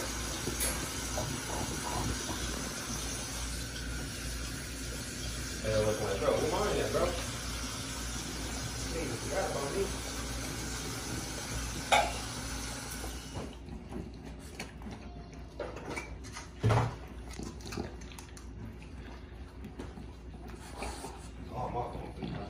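A dog crunches and chews dry food.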